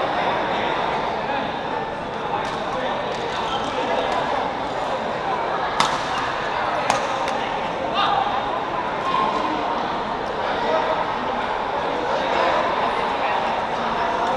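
Badminton rackets sharply strike a shuttlecock.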